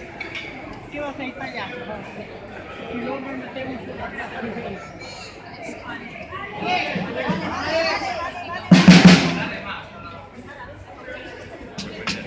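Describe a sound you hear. A crowd of men and women talks and murmurs nearby outdoors.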